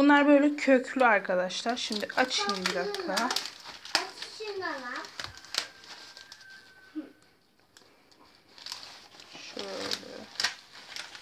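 Paper crinkles and rustles up close.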